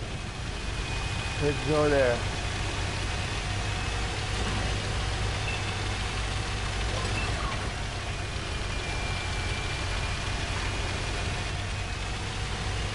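A tank engine rumbles steadily as the tank drives.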